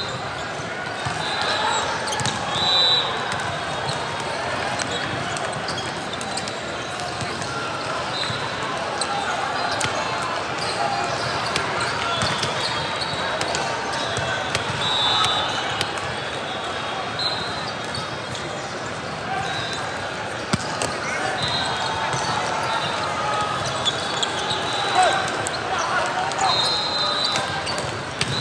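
A large indoor hall echoes with the chatter of a crowd.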